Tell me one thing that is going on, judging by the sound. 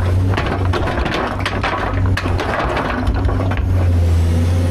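Stones clatter and scrape in an excavator bucket.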